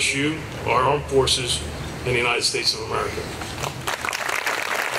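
A man speaks calmly through a microphone over loudspeakers outdoors.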